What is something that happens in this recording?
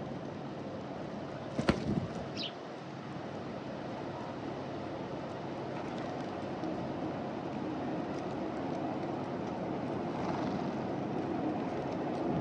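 Doves peck at seed on hard ground close by.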